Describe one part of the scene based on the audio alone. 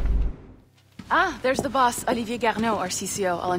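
A young woman speaks clearly and with animation, close up.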